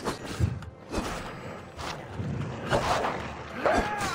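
A blade swings and strikes.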